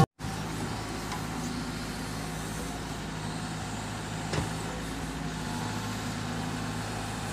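An excavator bucket scrapes through dirt.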